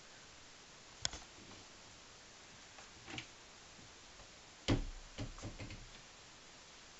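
Items knock and thud inside a wardrobe.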